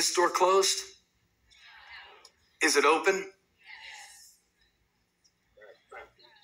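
A man speaks with animation, heard through a small loudspeaker.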